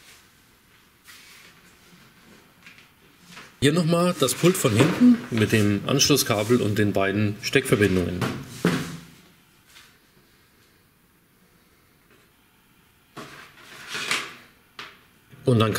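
A light plastic panel knocks and scrapes as it is handled.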